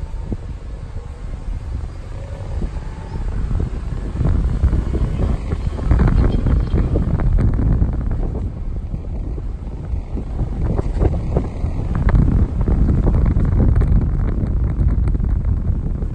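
Gusty wind roars and buffets the microphone outdoors.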